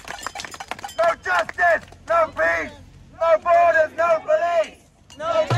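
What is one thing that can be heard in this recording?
A young woman shouts chants close by.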